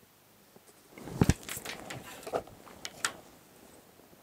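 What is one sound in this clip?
A ruler knocks down on a wooden table.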